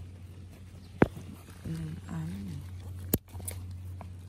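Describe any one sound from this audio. Garden shears snap shut with sharp clicks.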